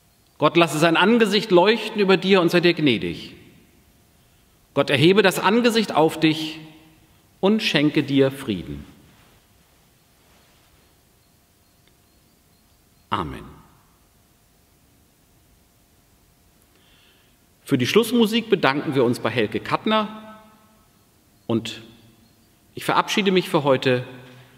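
A middle-aged man speaks slowly and solemnly, close by, in a hall with a slight echo.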